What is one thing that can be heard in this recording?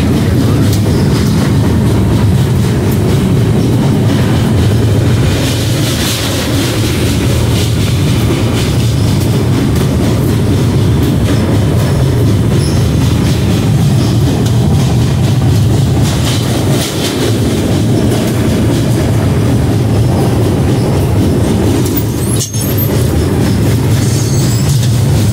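A train rumbles steadily across a metal bridge.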